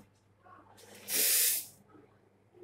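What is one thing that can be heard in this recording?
An espresso machine's steam wand lets out a short hissing blast.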